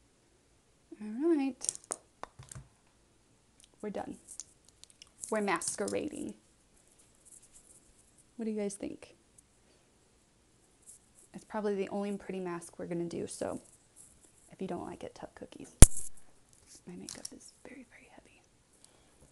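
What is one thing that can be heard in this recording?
A young woman talks calmly and close up into a microphone.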